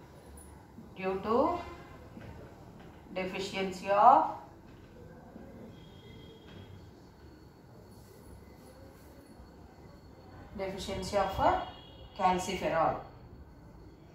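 A woman speaks calmly in short phrases, close by.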